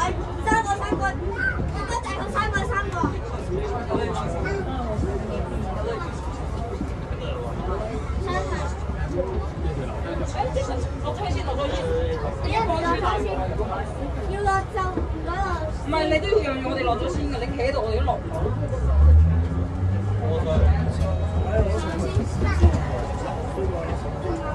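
A tram engine hums and rumbles low and steady.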